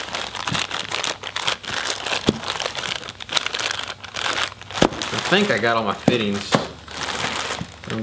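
Plastic bags crinkle and rustle in someone's hands.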